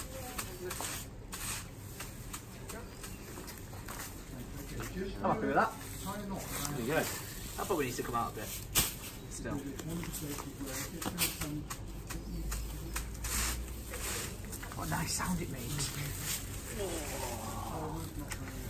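A wooden tool knocks and rustles against straw thatch.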